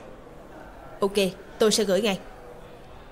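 A young woman speaks briefly into a phone, close by.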